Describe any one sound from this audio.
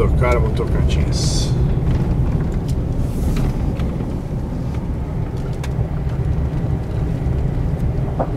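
A car engine hums steadily and tyres rumble on the road, heard from inside the car.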